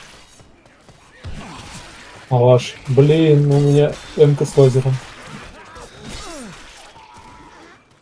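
A blade swishes and slashes into attackers.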